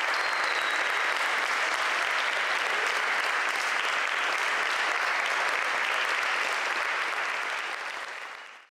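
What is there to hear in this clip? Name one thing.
A large crowd applauds loudly, then the clapping fades away.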